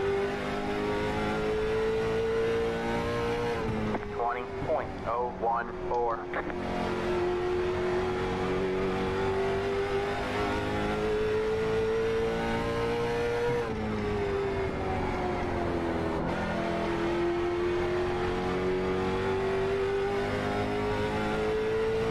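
A race car engine drones steadily, dropping in pitch as it slows for turns and rising again.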